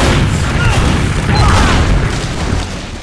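Gunfire bursts loudly and rapidly.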